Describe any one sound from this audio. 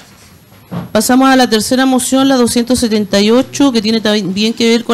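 A woman speaks animatedly into a microphone.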